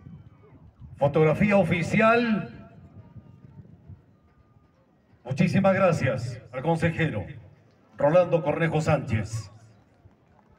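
A man speaks loudly through a loudspeaker outdoors, in short bursts.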